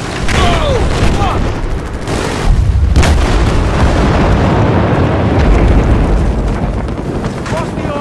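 Large explosions boom and rumble.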